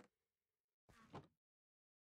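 A wooden chest creaks open and thuds shut.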